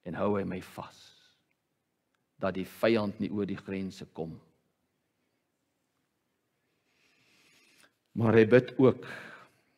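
A middle-aged man speaks emphatically into a microphone, pausing between phrases.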